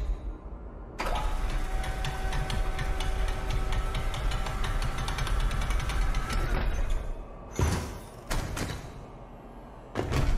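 A heavy mechanical lift hums steadily as it rises.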